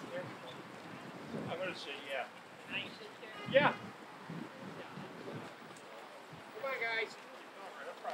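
A man speaks calmly through a microphone outdoors.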